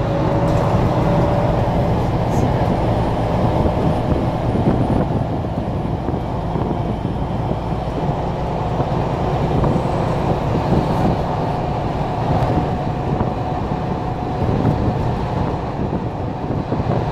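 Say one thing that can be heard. A car's engine hums steadily while driving along a road.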